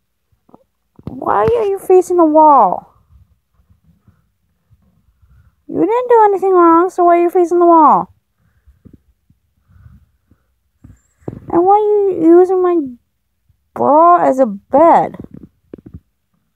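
A cat meows loudly and long, close by.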